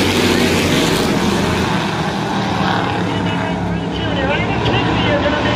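Race car engines roar loudly as a pack of cars speeds past.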